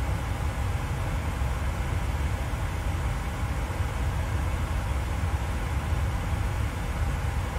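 Jet engines drone steadily with a deep rumble.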